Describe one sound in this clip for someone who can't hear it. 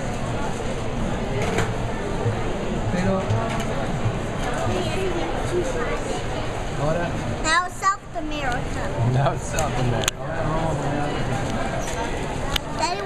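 A crowd murmurs and chatters in an echoing room.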